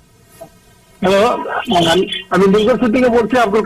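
A woman speaks clearly and steadily close to a microphone.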